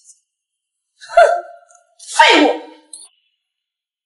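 A young woman speaks scornfully, close by.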